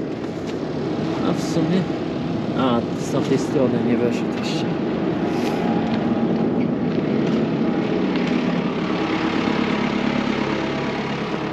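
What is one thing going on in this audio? A tractor engine idles nearby with a steady rumble.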